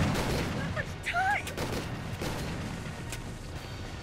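A gun's magazine clicks and clacks during a reload.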